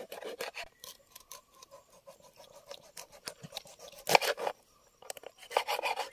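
A knife chops through fish on a wooden board.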